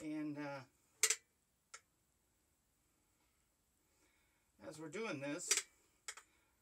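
A caulking gun clicks as its trigger is squeezed.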